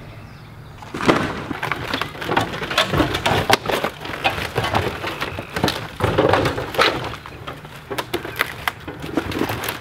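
A man drags and tosses sheet metal and wooden debris with loud clattering and scraping.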